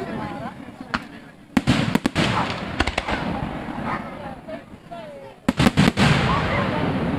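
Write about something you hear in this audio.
Fireworks burst with sharp bangs and cracks overhead.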